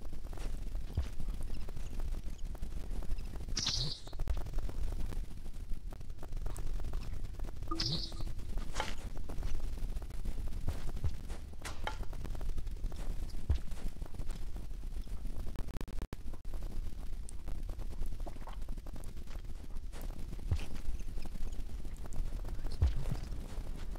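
Soft thuds sound as a small creature lands after jumps.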